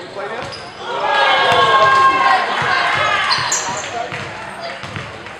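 A crowd cheers loudly and then dies down.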